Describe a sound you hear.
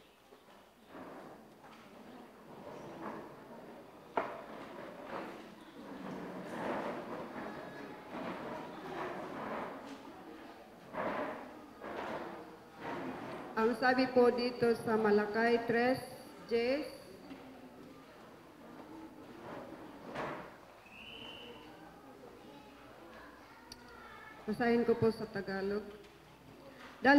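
A middle-aged woman speaks calmly into a microphone over a loudspeaker in an echoing hall.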